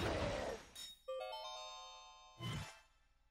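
A video game chime rings in a quick rapid run.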